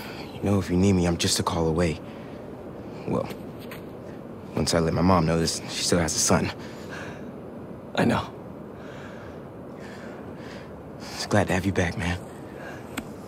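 A young man speaks calmly and warmly, close by.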